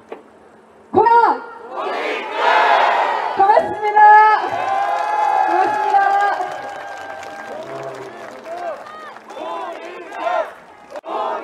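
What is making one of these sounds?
A crowd outdoors cheers and shouts.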